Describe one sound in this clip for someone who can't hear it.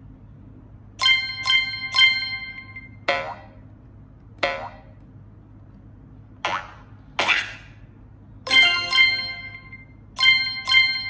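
Short bright chiming jingles play from a tablet game.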